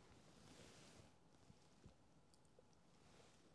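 A man chews food with soft crunching sounds.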